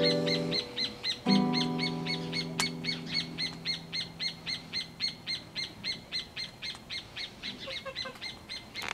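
A mandolin plucks bright notes.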